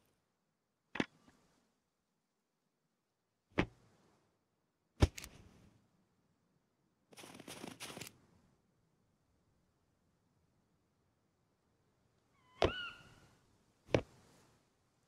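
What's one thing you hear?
Game menu clicks sound sharply now and then.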